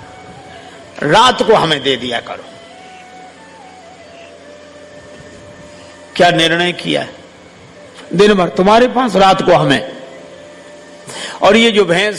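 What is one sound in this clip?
An elderly man speaks with animation through a microphone, in short bursts with pauses.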